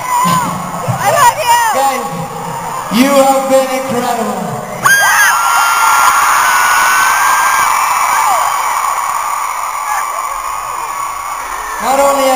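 A man sings into a microphone, heard through loud speakers in a large hall.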